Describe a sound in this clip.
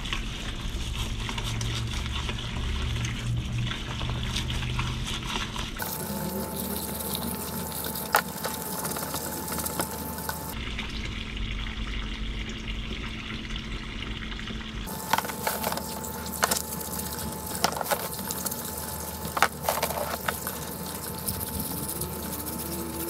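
A thin stream of liquid splashes steadily into a basin.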